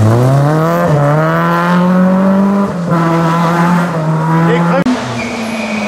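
A rally car engine revs hard and roars past, shifting gears.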